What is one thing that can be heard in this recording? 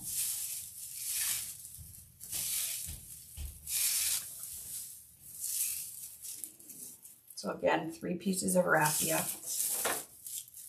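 Dry raffia strands rustle and crinkle as hands handle them.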